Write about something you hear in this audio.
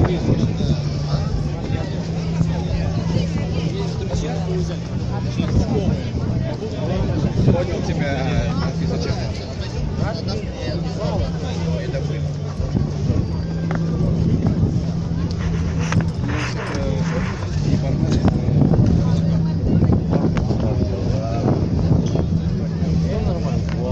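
A crowd chatters outdoors nearby.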